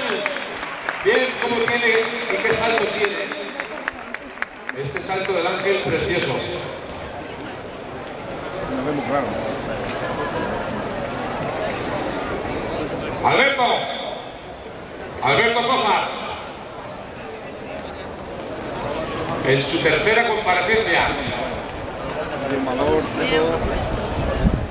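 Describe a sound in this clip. Men in the crowd shout out loudly now and then.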